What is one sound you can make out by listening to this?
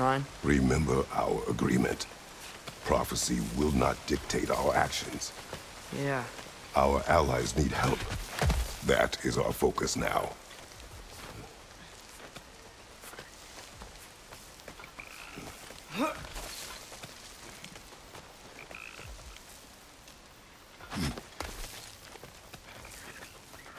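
Hands scrape and grip on rock during climbing.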